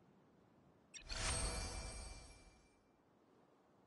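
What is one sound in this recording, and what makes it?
A magical shimmering whoosh swells and fades.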